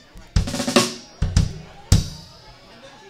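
Drums are struck in a few loud hits.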